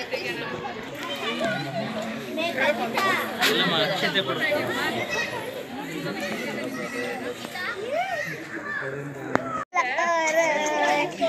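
A crowd of men and women chatters nearby, with many voices overlapping.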